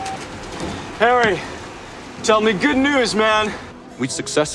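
A man speaks cheerfully on a phone.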